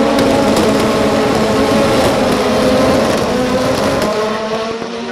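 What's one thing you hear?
A pack of racing cars roars past at full throttle, loud and close.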